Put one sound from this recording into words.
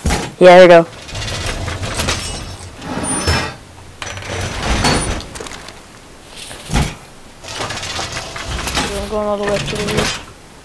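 A metal panel clanks and scrapes as it is set against a wall.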